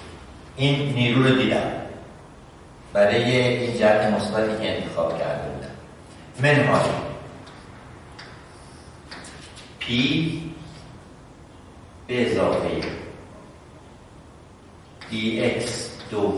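A middle-aged man speaks in bursts, explaining calmly.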